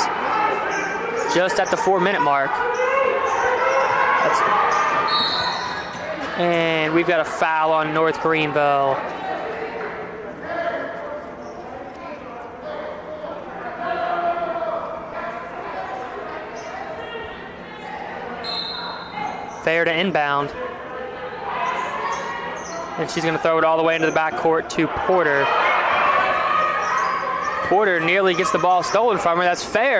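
Young women call out to one another in an echoing gym.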